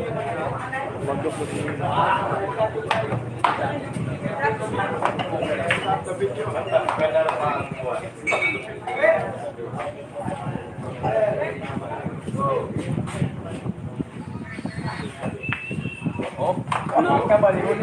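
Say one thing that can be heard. Billiard balls click together on a table.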